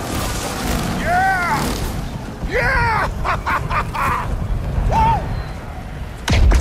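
A young woman whoops and laughs with excitement.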